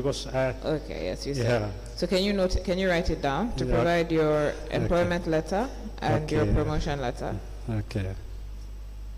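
A woman speaks firmly into a microphone.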